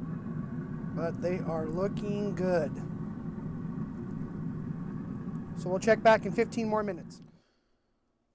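A grill fire rumbles steadily.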